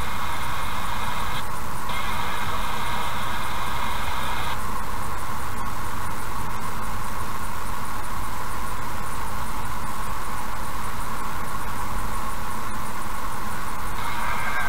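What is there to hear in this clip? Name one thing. A car's tyres hum steadily on a road as it drives along.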